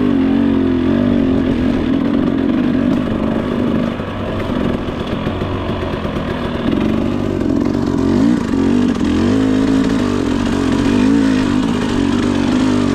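A dirt bike engine hums and revs up and down close by.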